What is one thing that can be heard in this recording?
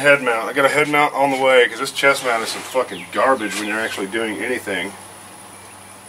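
An elderly man talks calmly close to the microphone.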